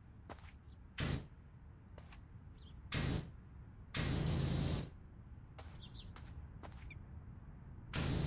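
A pressure washer sprays water in short bursts of loud hissing.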